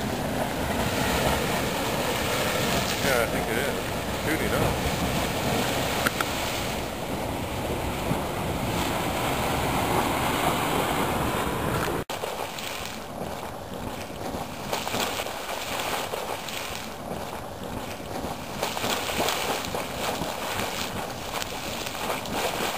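Steam hisses and roars steadily from a hot spring vent.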